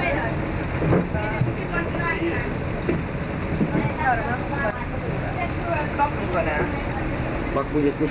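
A bus rumbles past close by.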